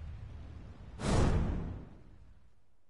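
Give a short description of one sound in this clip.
A sharp whoosh bursts out.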